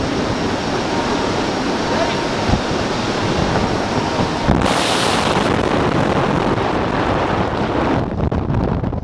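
Wind roars loudly in free fall.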